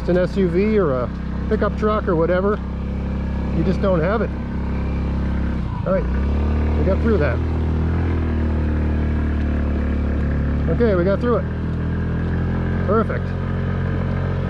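A small motorbike engine hums steadily at low speed.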